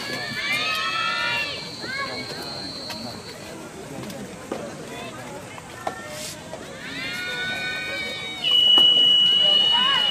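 A tennis ball is struck sharply by rackets in a rally outdoors.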